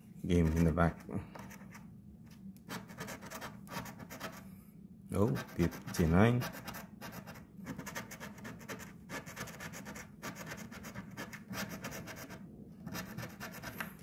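A coin scratches briskly across a card with a dry rasping sound.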